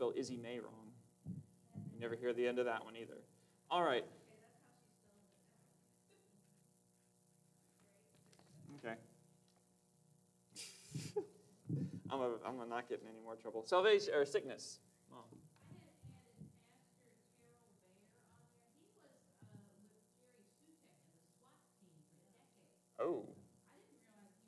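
A man speaks calmly into a microphone in a large room with a slight echo, pausing often.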